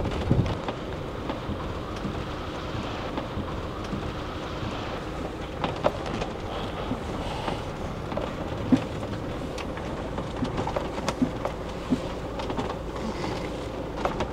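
Tyres crunch on a rough road.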